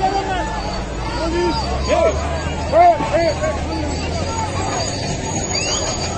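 A crowd of men shout in a scuffle outdoors.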